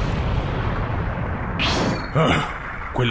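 A cloud of smoke billows with a low rushing roar.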